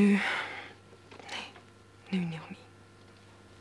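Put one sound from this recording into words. A young woman speaks quietly and briefly.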